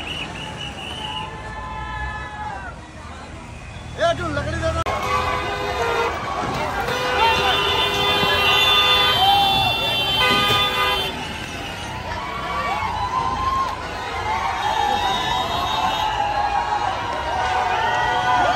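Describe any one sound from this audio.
A crowd of men shouts outdoors.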